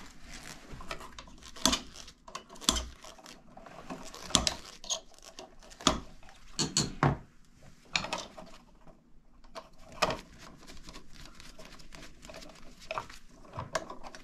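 Metal tools click and scrape against metal fins close by.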